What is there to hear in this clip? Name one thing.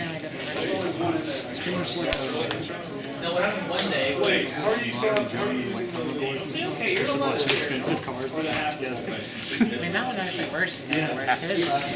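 Cards flick and rustle as a hand thumbs through them.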